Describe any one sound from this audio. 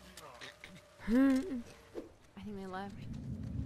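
A woman speaks tensely in a game.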